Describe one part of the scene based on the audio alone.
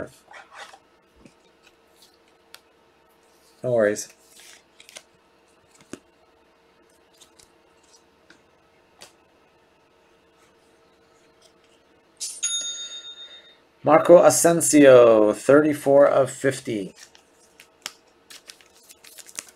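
Plastic card cases click and rustle in someone's hands.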